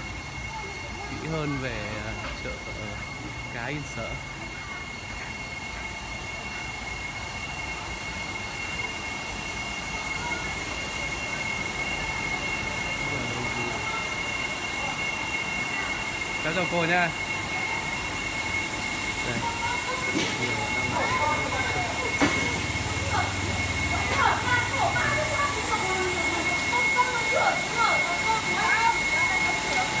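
Rain patters steadily on wet ground and metal roofs.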